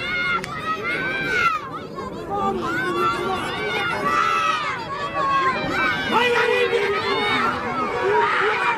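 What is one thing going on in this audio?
A crowd of spectators shouts and cheers excitedly outdoors.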